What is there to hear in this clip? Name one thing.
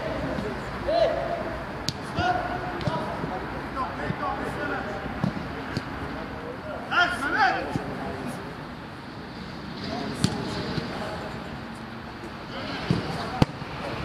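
Young men shout to each other across a pitch outdoors.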